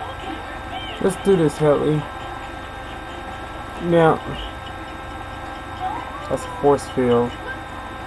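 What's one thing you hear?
A young man talks casually into a nearby microphone.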